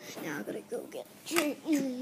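A small plastic toy is picked up off a carpet.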